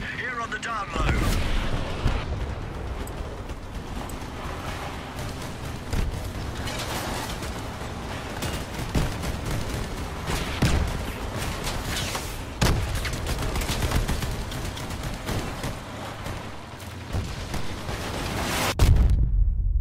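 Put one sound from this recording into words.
Explosions boom now and then.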